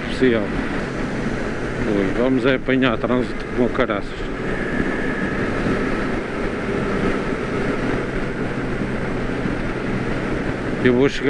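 Wind rushes steadily past the rider.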